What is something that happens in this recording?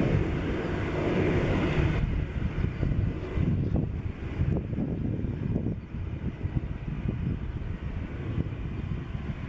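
A jet airliner's engines roar steadily in the distance.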